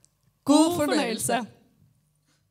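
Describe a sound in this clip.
A young woman speaks brightly into a microphone over loudspeakers.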